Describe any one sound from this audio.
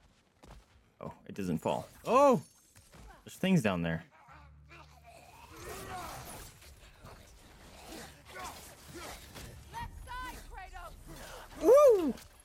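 A young man shouts and exclaims excitedly into a close microphone.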